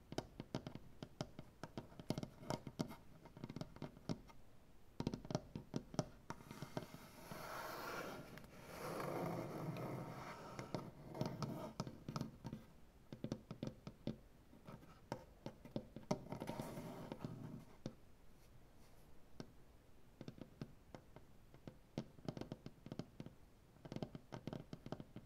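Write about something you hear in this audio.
Fingernails tap and click on a wooden surface.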